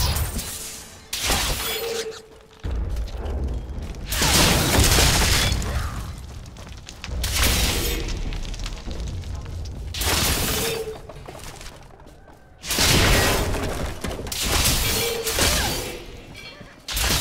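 Magic spells crackle and burst in repeated noisy blasts.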